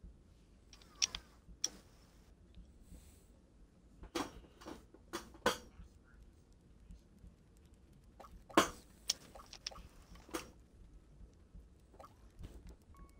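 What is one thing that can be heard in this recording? Short menu clicks and blips sound as a selection moves.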